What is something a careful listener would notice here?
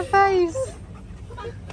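A husky yips and howls up close.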